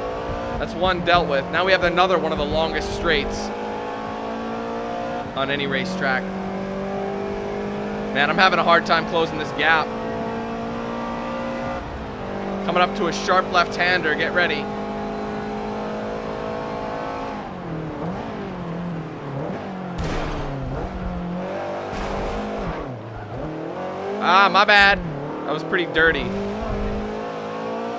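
A car engine drones steadily, revving higher through the gears and then dropping as the car slows.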